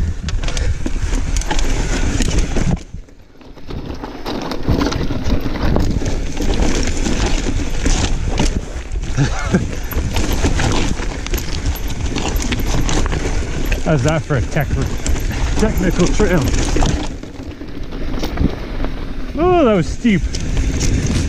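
Bicycle tyres rattle and crunch over rocky dirt.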